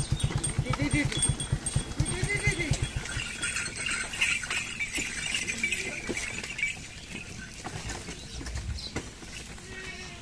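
Wooden cart wheels creak and rumble over the dirt.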